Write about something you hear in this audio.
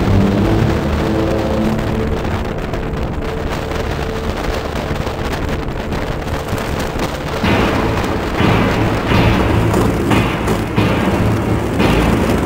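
Small kart engines buzz and whine close by.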